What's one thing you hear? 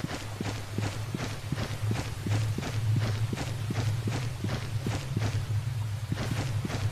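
Quick footsteps thud steadily on stony ground.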